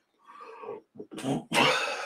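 A man coughs.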